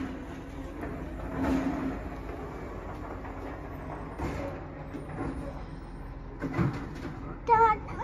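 A garbage truck engine rumbles and idles nearby.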